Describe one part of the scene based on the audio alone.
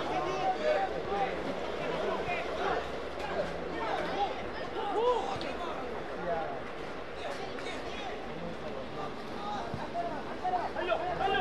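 Young men shout and call out to each other outdoors.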